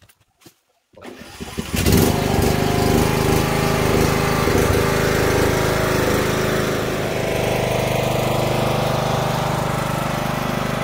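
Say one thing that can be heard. A ride-on mower engine starts and runs loudly and steadily.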